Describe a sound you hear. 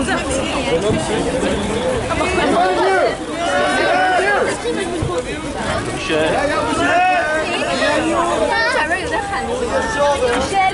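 Many men and women talk at once close by, outdoors.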